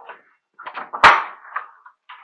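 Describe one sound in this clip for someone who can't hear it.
A door opens with a sharp knock.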